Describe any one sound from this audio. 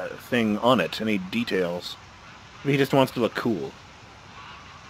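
A man speaks nervously and laughs.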